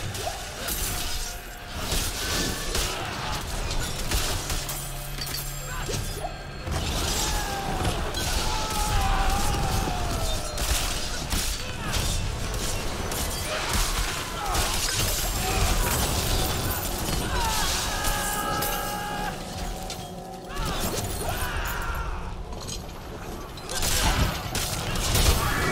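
Creatures grunt and shriek as they are struck.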